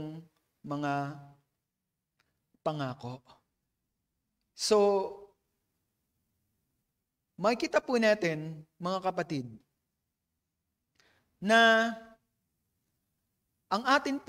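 An elderly man preaches through a microphone in short, emphatic phrases with pauses between them.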